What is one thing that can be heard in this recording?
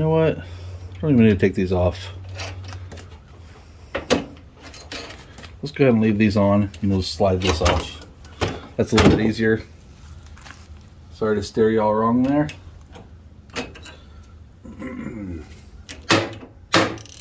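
A wrench clinks on a steel bolt.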